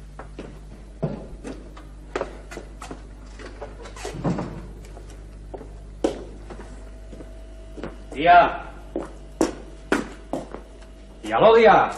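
Footsteps clatter across a floor.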